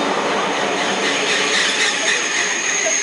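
Train wheels squeal with a high whine on the rails.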